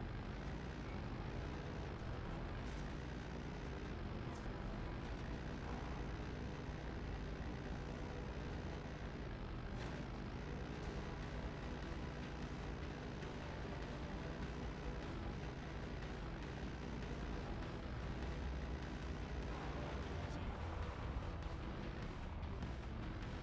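A heavy vehicle's engine rumbles steadily as it drives.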